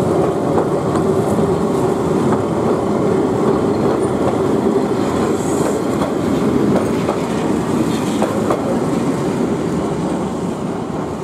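A tram rumbles and clatters past close by on its rails.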